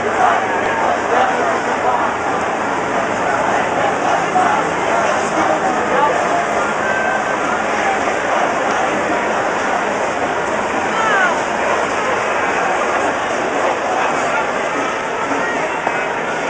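A large crowd chatters and shouts outdoors, close by.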